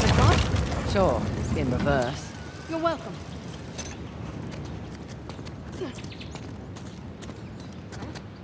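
Footsteps tread on grass and stone.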